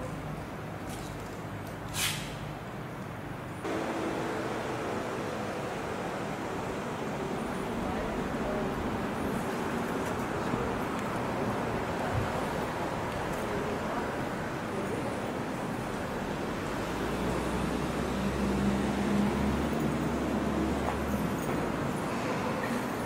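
Steady city traffic and street noise murmur outdoors.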